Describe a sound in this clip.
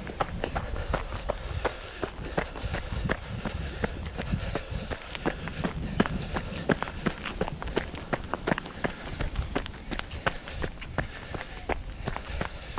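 Footsteps crunch steadily on dry leaves and dirt.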